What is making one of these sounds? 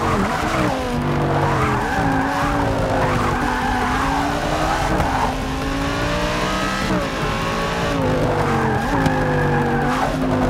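Tyres squeal through tight corners.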